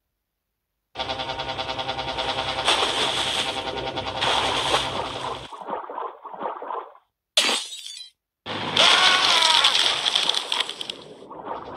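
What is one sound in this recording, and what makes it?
Upbeat electronic game music plays.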